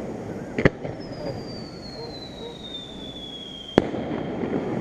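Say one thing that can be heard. A firework rocket whistles with a falling pitch as it climbs.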